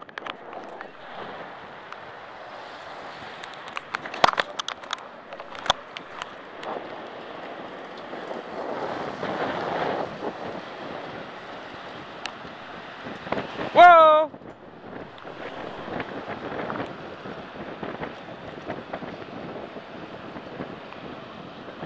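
Bicycle tyres roll steadily on asphalt.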